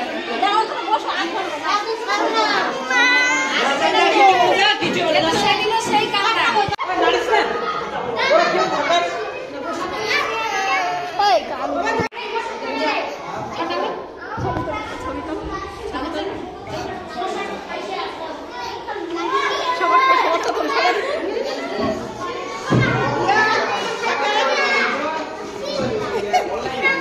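Children chatter in the background.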